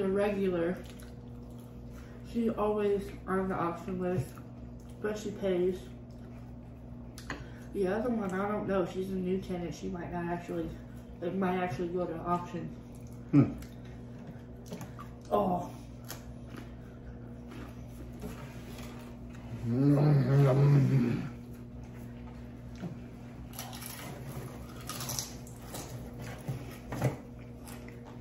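Crispy food crunches as it is bitten.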